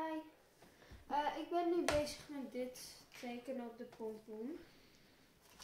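A young girl speaks nearby.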